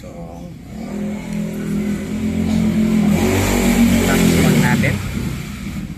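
A finger clicks a button on a motorbike dashboard.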